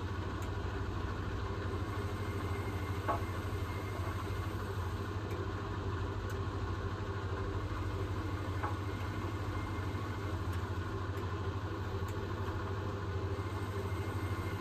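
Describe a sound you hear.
Wet laundry sloshes and thumps inside a washing machine drum.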